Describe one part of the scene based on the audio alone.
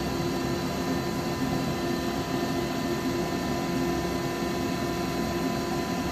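A wood lathe spins with a steady whir.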